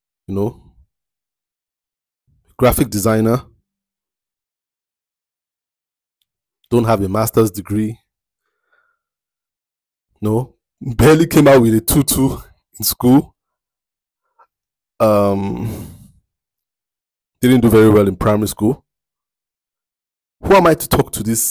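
A man speaks calmly and close to a microphone, in short phrases with long pauses.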